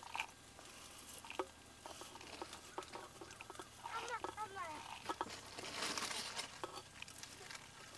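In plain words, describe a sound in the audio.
Small seeds patter and rattle as they pour into a stone bowl.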